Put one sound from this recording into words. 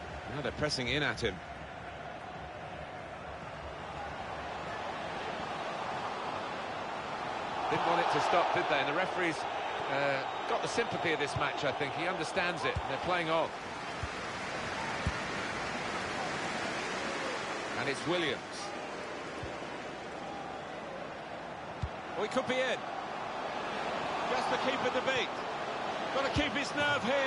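A large stadium crowd roars steadily, swelling now and then.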